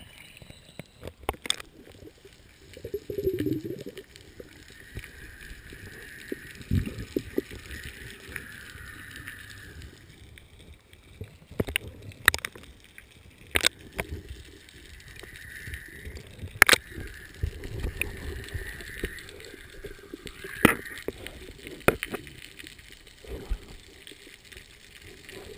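Air bubbles from a diver's regulator gurgle and burble underwater.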